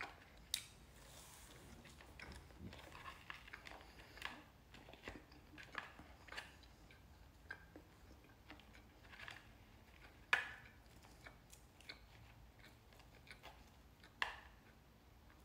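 A young man chews salad close to the microphone.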